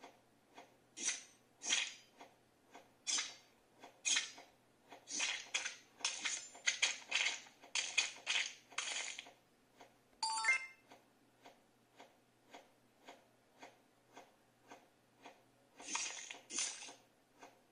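Quick swishing slice sounds play from a small tablet speaker.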